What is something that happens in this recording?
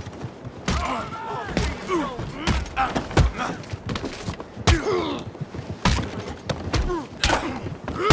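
A man grunts and groans with effort.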